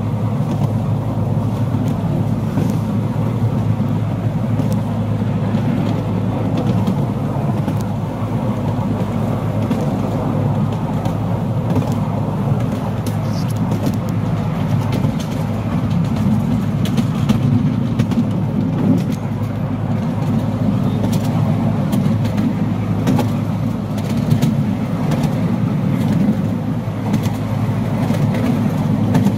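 A miniature train rumbles steadily along its rails.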